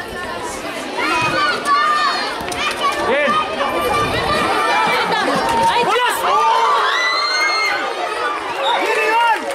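A crowd of children shouts and cheers loudly outdoors.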